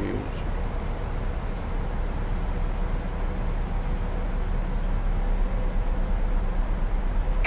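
A jet airliner's engines and airflow roar steadily.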